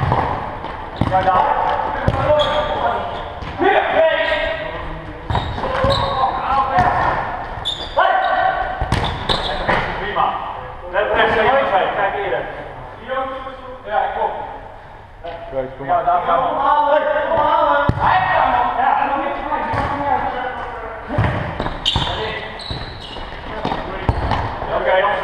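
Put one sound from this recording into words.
A ball thuds against a hard floor.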